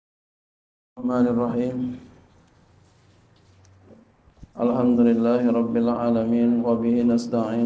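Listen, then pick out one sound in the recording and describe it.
A man recites in a slow, melodic voice through a microphone.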